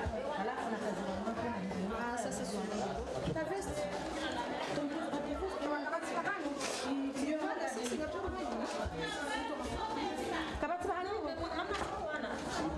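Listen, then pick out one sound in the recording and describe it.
Several women talk over one another close by.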